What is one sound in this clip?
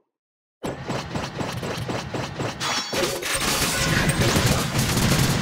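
Rapid electronic hit sound effects clatter in quick succession.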